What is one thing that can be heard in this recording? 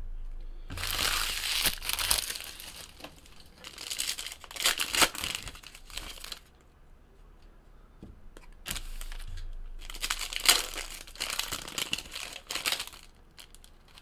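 Plastic wrappers crinkle and tear.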